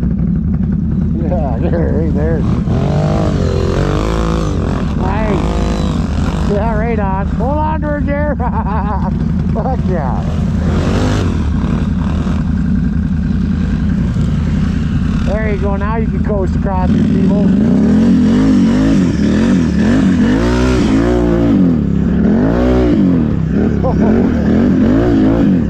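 A quad bike engine drones close by, revving up and down.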